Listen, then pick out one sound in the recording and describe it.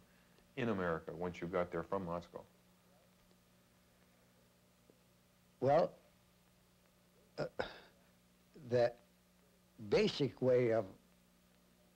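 An elderly man speaks calmly and slowly in short phrases, close by, with long pauses.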